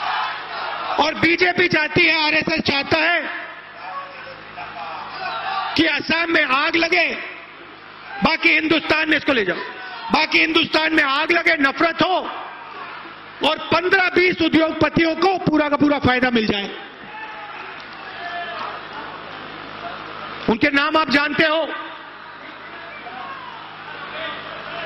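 A man speaks forcefully into a microphone, his voice booming and echoing through loudspeakers outdoors.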